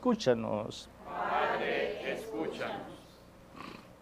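A congregation responds together in unison.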